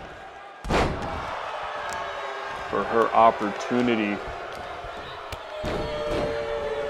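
A body slams onto a wrestling ring mat with a heavy thud.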